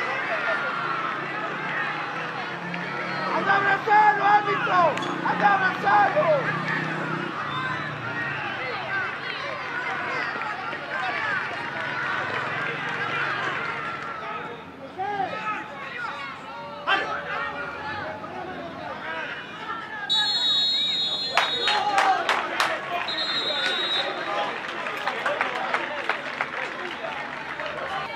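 A crowd of spectators shouts and chatters outdoors.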